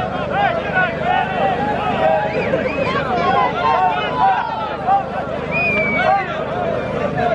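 Two bulls clash heads and shove each other.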